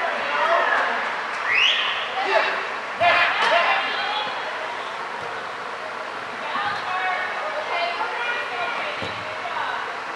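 Young children shout and call out across a large echoing hall.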